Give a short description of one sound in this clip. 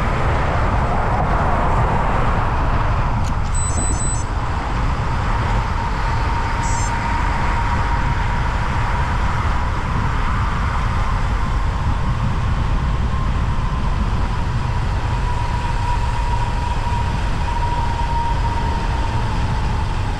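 Wind rushes and buffets against a microphone on a fast-moving bicycle.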